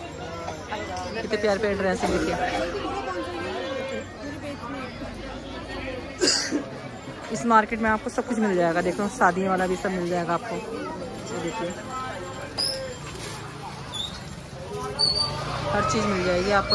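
Several men and women talk and call out close by in a busy crowd.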